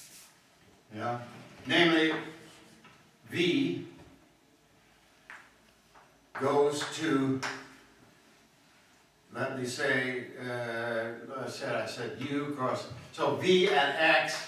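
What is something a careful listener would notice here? An elderly man speaks calmly in a large, echoing room.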